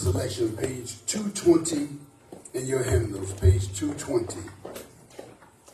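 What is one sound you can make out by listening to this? An elderly man speaks steadily through a microphone.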